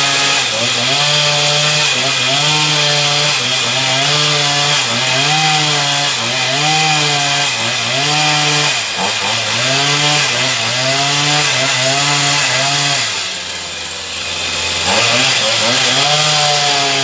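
A chainsaw roars loudly up close, its pitch rising and sagging as it cuts through wood.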